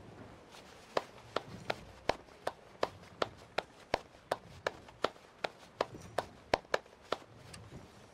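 Hands clap in a quick, steady rhythm.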